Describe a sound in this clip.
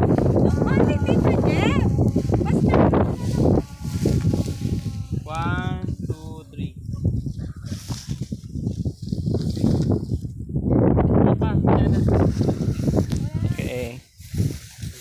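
Wind blows hard into the microphone outdoors.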